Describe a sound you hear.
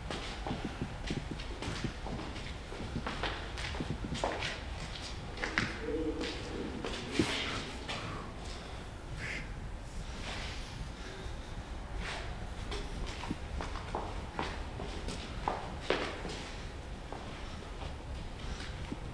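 Footsteps climb hard stairs in a small echoing stairwell.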